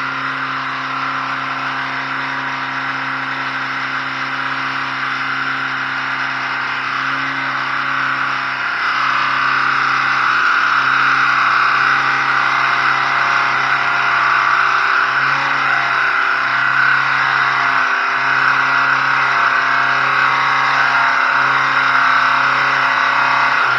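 A car engine idles steadily close by, its exhaust rumbling.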